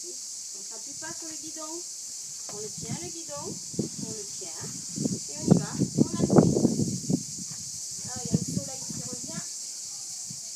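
A woman talks encouragingly nearby.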